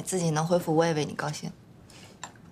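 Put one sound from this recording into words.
A young woman speaks warmly and close by.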